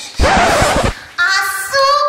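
A young woman shouts loudly close by.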